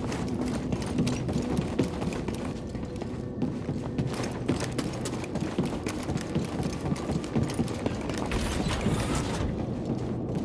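Footsteps run quickly across a metal floor.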